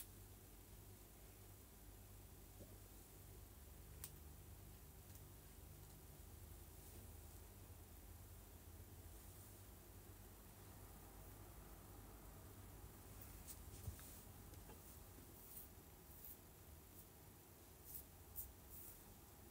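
Hands rustle through hair close by.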